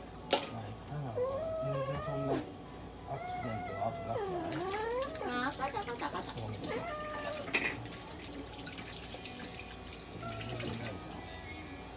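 A cat yowls and meows loudly in distress.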